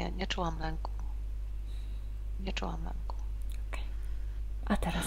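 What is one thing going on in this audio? A woman speaks calmly through an online call headset microphone.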